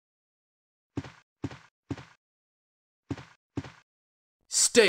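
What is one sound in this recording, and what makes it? Footsteps tap on a hard floor in an echoing hall.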